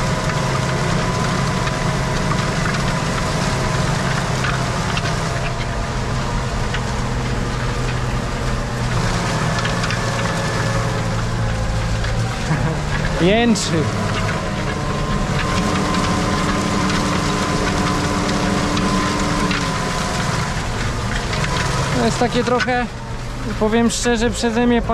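A disc harrow rattles and rumbles over the ground.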